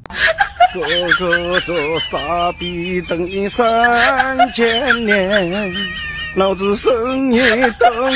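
A hen clucks.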